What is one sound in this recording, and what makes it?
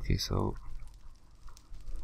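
Dirt blocks crunch as they are broken.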